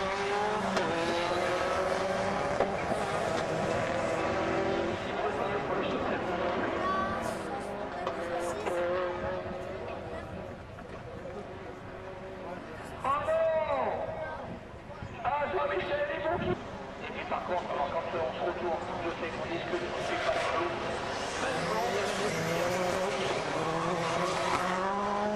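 Racing car engines roar and rev loudly as they speed past.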